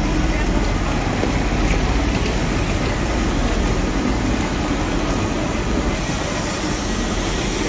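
Footsteps walk along a platform.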